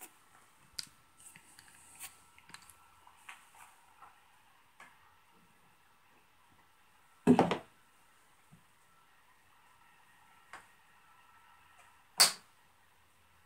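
Small objects click and knock on a wooden surface.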